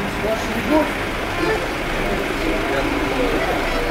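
An accordion plays a lively tune.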